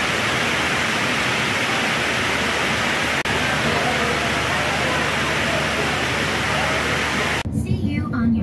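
Heavy rain pours down and splashes steadily.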